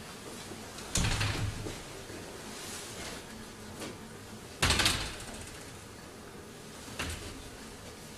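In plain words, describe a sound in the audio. A heavy glass door thumps and rattles.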